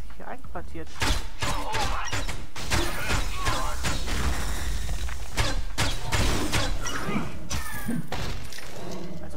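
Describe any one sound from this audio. Gunshots and blasts ring out in quick bursts.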